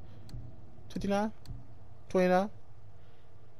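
A bright menu chime rings as a selection changes.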